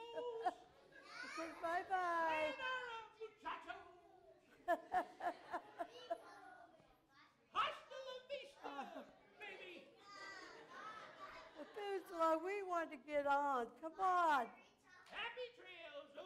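A puppet voice talks in a high, animated tone.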